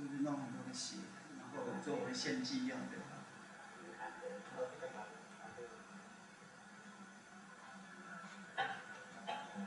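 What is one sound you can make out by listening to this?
A man's voice sounds through a loudspeaker in a room.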